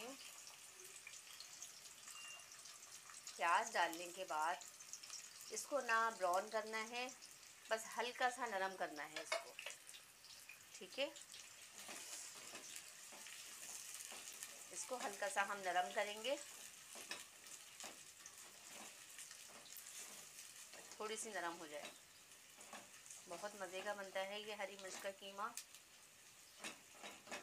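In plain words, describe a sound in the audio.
Onions sizzle gently in a hot pot.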